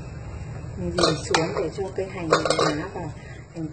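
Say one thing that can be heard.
A metal ladle clinks and scrapes against a bowl.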